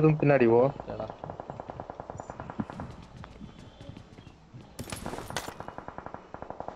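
A game character's footsteps run quickly across a wooden floor.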